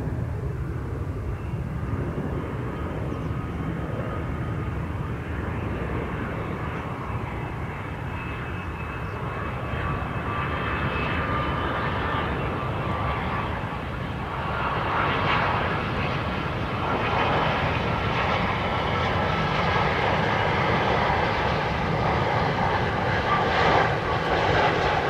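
A jet airliner's engines roar and whine as it approaches, growing steadily louder.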